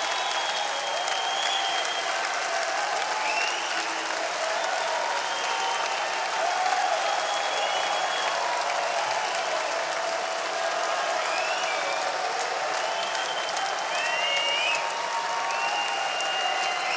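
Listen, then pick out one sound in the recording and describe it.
A large crowd cheers and whistles in a large echoing hall.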